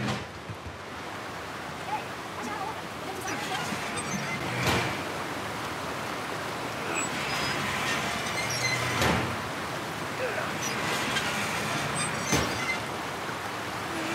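Water rushes and splashes steadily nearby.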